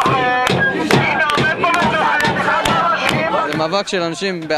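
A crowd shouts a chant loudly outdoors.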